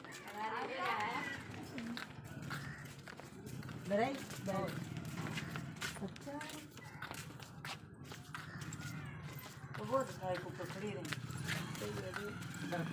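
Sandals scuff and tap on a paved path.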